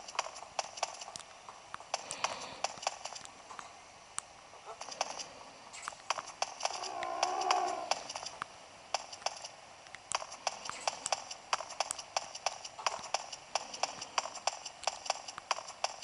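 Footsteps tap steadily through a small console speaker.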